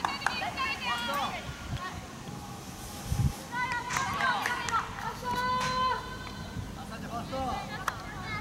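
Young players shout calls to each other across an open field.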